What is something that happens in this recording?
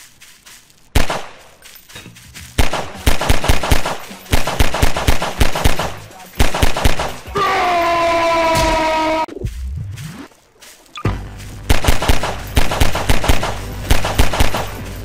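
A pistol fires in quick bursts of loud shots.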